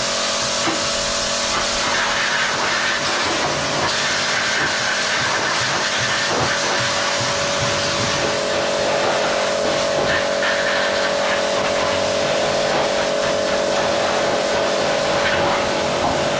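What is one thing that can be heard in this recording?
A pressure washer's motor drones steadily.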